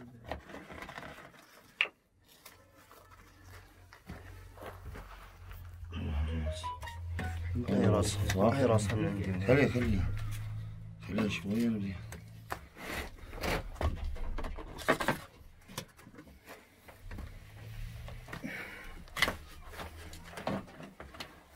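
A metal tool knocks and scrapes against concrete blocks.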